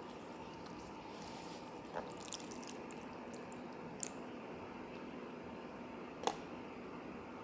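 Chopsticks click against a bowl while stirring food.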